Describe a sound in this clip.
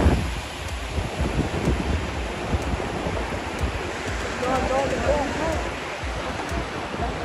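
Fast floodwater rushes and churns steadily.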